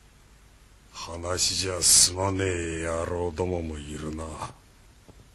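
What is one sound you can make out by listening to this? An older man speaks in a low, serious voice.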